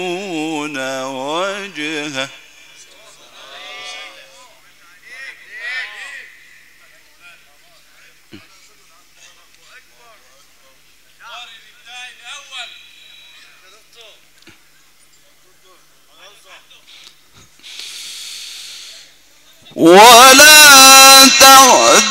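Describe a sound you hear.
A man sings loudly through loudspeakers.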